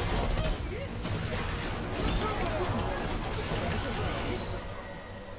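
Game combat effects clash and crackle.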